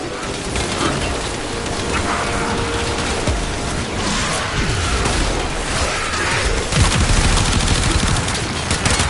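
Energy blasts boom and whoosh.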